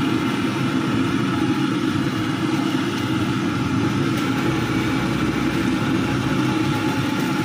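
Hot oil sizzles and crackles as balls deep-fry in a wok.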